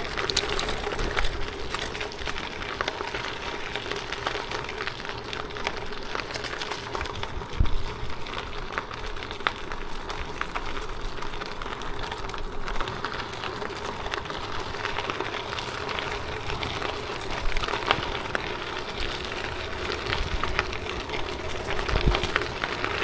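Bicycle tyres crunch and rattle over a gravel path.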